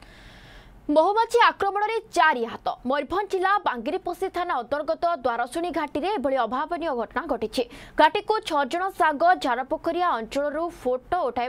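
A young woman speaks clearly and steadily into a microphone.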